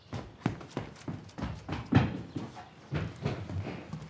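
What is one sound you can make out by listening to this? A child's footsteps run across a hard floor.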